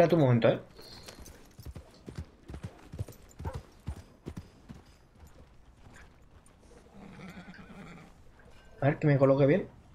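A horse's hooves clop on a dirt road.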